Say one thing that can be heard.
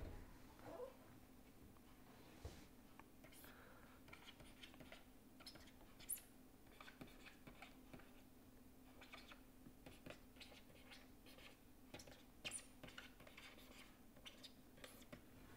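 A pen scratches and taps softly on a writing surface.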